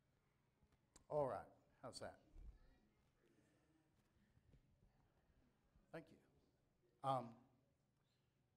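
A man speaks loudly over a microphone, in short bursts.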